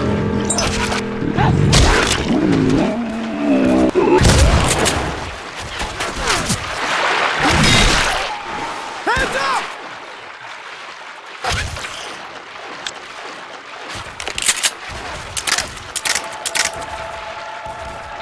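A shotgun fires loud blasts.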